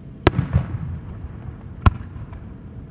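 Fireworks burst with sharp bangs in the distance.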